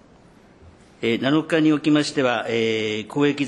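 An elderly man speaks formally into a microphone.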